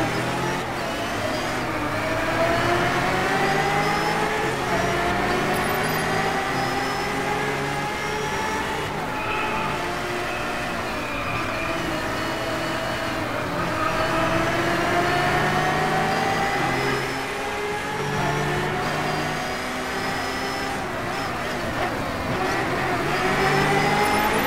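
Tyres hum on the track.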